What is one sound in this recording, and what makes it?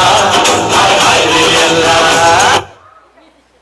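Loud music plays over loudspeakers in a large hall, then stops abruptly.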